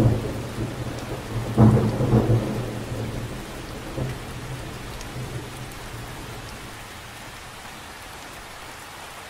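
Light rain patters softly on the surface of a lake.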